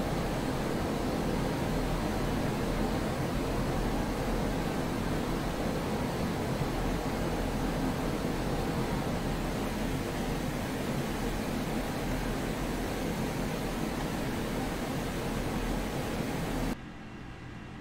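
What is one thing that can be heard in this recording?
Wind rushes loudly over the canopy.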